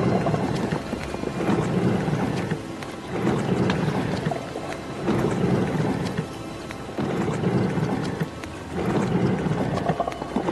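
Water flows and splashes nearby.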